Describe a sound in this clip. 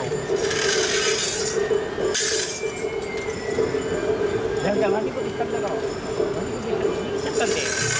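Metal rings on a staff jingle as it strikes the ground.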